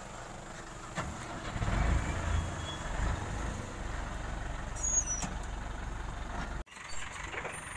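A truck engine rumbles.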